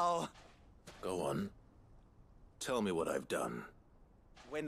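A man answers in a calm, low voice.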